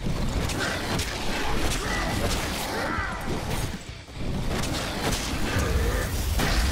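Blades slash and strike with sharp impacts.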